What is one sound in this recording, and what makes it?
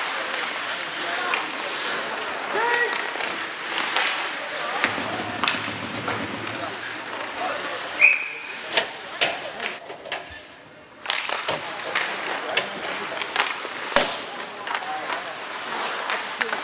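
Skates scrape and hiss across ice in a large echoing hall.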